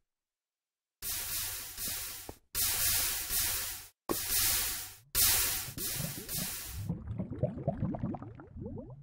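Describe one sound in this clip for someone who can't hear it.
Lava gushes from a bucket and bubbles.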